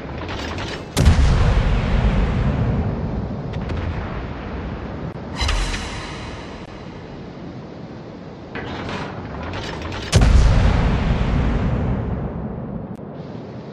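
Heavy naval guns fire with deep booming blasts that rumble away.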